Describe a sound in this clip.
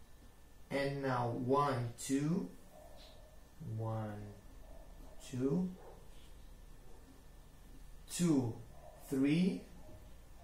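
A young man speaks calmly and close by, explaining in short phrases.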